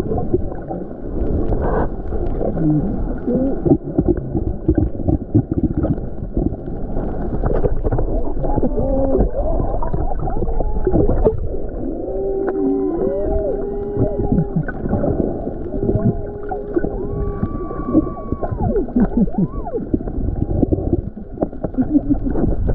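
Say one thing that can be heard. Water rushes and rumbles, heard from underwater.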